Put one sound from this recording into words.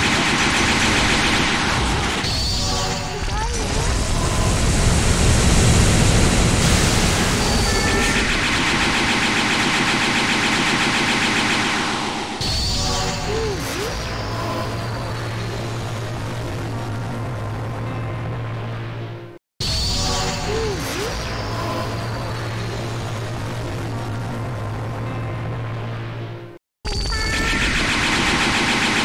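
Loud energy blasts roar and crackle.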